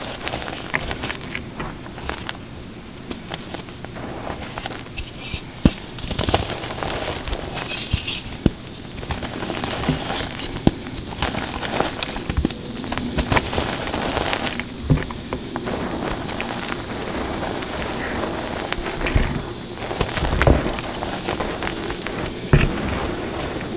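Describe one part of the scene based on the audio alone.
Hands scoop and rub dry chalk powder with a soft gritty rustle.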